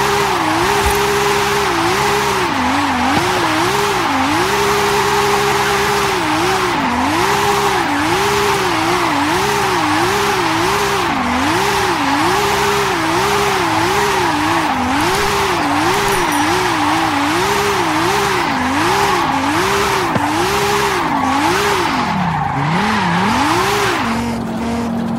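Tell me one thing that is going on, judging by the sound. A car engine revs hard, its pitch rising and falling rapidly.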